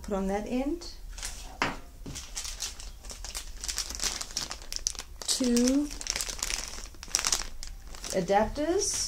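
A plastic bag crinkles in hands.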